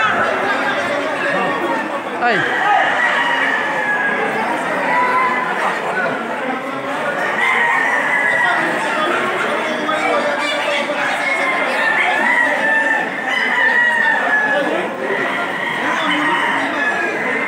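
A large crowd of men talks and shouts loudly all around, echoing under a big roof.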